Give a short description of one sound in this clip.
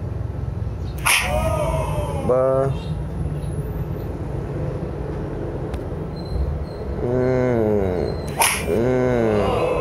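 A loud slap smacks against a face.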